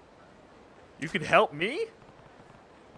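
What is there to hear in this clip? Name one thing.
A man exclaims briefly in surprise.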